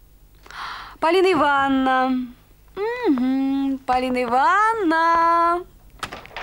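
A woman wails loudly in long, sliding, drawn-out cries.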